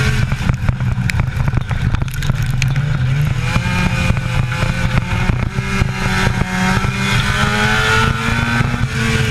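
A race car engine roars loudly and revs up and down.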